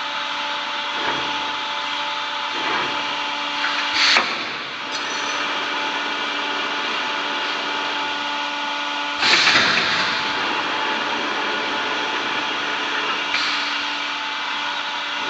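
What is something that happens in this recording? An industrial machine hums steadily.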